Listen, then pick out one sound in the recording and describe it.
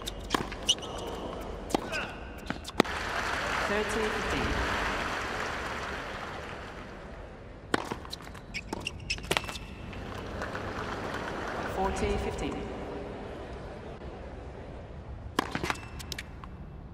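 A tennis ball is struck with sharp pops.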